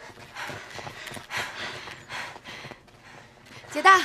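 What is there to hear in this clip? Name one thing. Footsteps run across hard ground.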